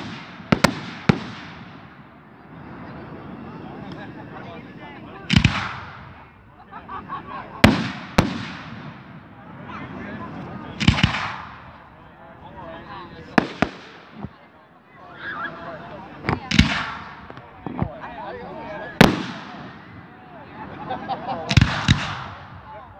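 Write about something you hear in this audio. Fireworks burst with loud booming bangs, echoing outdoors.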